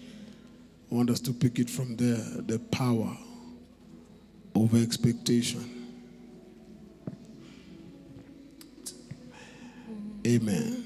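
A man speaks with emphasis through a microphone, in bursts with pauses, in a reverberant hall.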